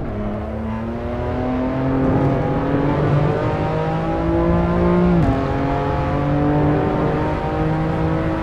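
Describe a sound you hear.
A racing car engine revs up steadily through the gears, with a brief drop in pitch at a gear change.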